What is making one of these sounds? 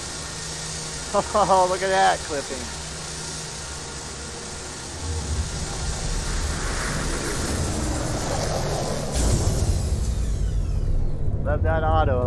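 A spacecraft engine rumbles low and steady.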